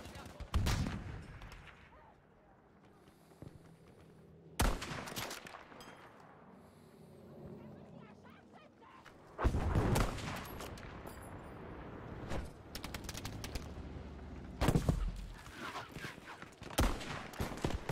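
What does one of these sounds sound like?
Rifle shots crack loudly, one at a time with pauses between.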